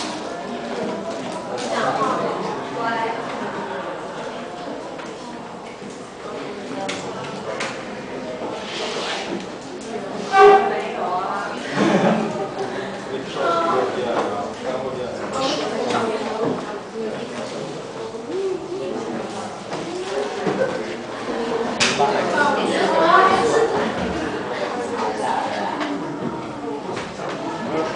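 A young woman speaks through a handheld microphone in an echoing room.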